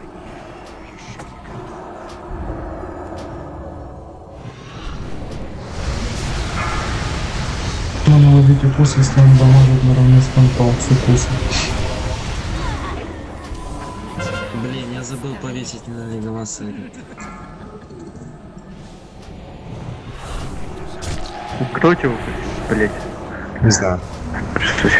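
Magic spells crackle and boom in a busy fight.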